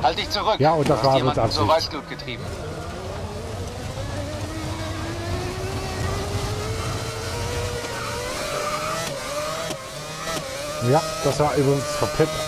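A racing car engine whines and slowly climbs in pitch as it speeds up.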